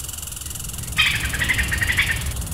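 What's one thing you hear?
A small squirrel chirps in quick, shrill bursts.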